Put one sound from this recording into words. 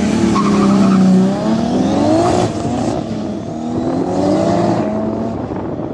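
A car accelerates away at full throttle.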